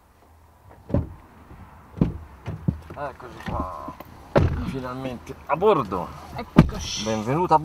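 A car door opens and thuds shut.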